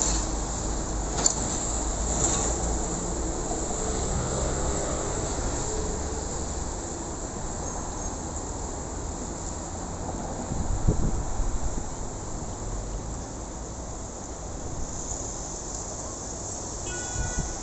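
Traffic hums steadily on a busy street nearby.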